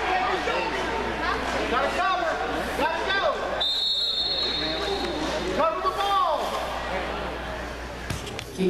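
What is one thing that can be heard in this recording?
A crowd of voices chatters and calls out in a large echoing hall.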